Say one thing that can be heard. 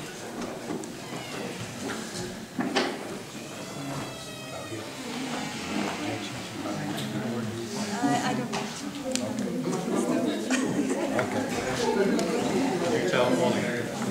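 A man speaks calmly at some distance in a room.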